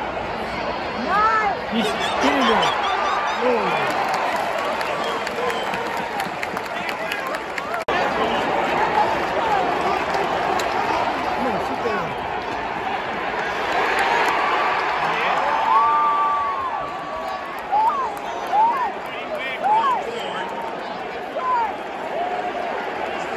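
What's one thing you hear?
Fans close by cheer and whoop excitedly.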